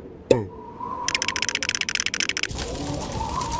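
Knitting needles click rapidly.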